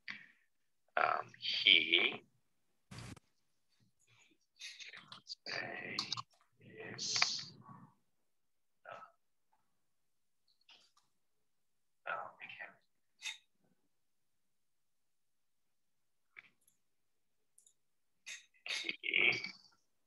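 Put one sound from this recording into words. A woman speaks calmly over an online call, explaining and dictating.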